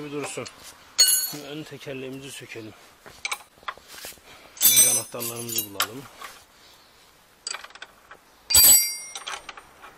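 Metal tools clink and clatter.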